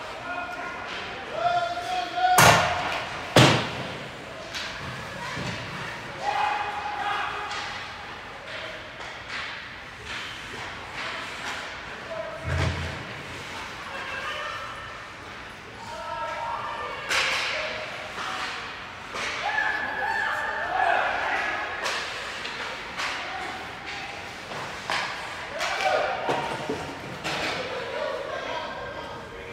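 Ice skates scrape and swish across the ice.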